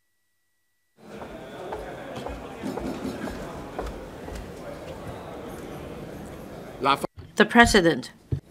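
A crowd of people murmurs and shuffles in a large echoing hall.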